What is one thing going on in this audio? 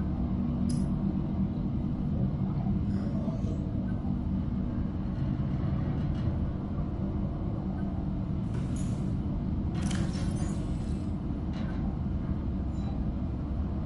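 Soft interface blips sound as menu items are selected.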